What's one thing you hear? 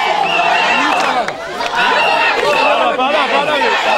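A woman speaks loudly close by amid the crowd.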